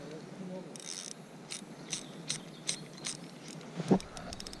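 A fishing reel ticks rapidly as its handle is cranked.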